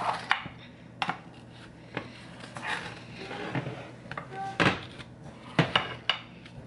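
A knife cuts through a soft cake.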